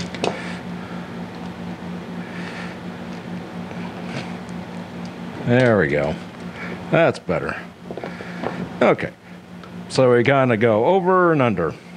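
Small plastic connectors click and rattle as they are handled.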